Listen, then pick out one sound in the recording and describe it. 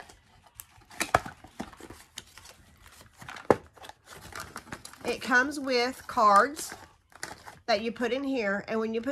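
Cardboard rustles and taps as a box is handled and opened.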